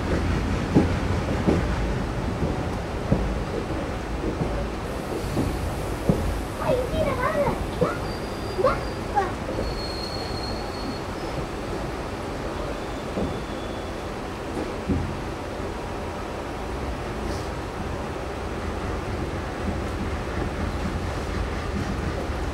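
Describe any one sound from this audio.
A train rumbles and rattles steadily along the tracks, close by.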